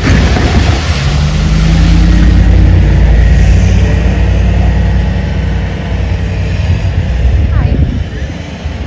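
A small loader's engine rumbles steadily nearby.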